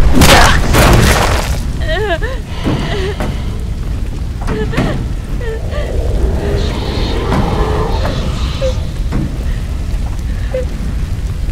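A fire crackles and roars.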